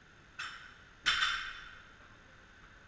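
A loaded barbell is dropped onto a rubber platform and bounces with a clang.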